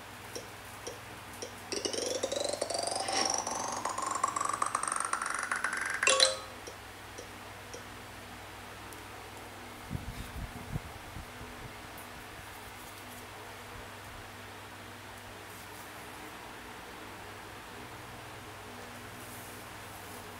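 Fingers tap on a tablet.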